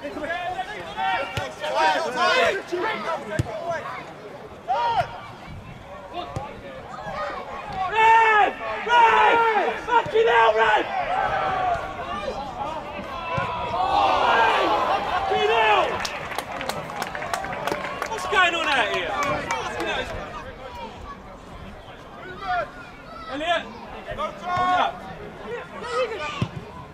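Players shout across an open pitch outdoors.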